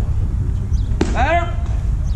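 A bat cracks against a ball.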